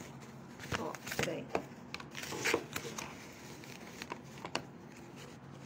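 Stiff paper crinkles and rustles as it is unrolled.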